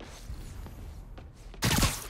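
Footsteps tap on a hard wooden floor.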